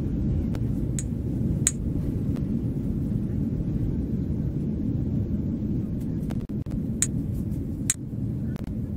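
A short bright chime sounds several times.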